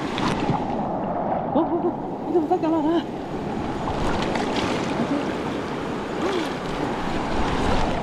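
Water splashes as people wade through it.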